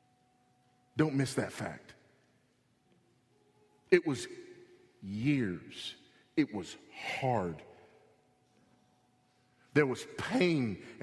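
A man speaks with emphasis into a microphone, pausing between phrases.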